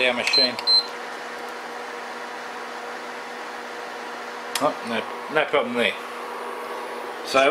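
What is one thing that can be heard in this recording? An induction cooker hums steadily.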